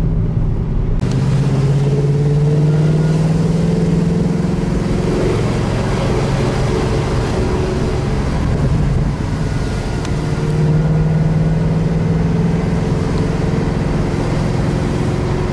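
Wind rushes past an open car window.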